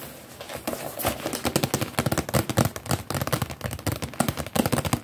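A cardboard box rustles and knocks as it is handled close by.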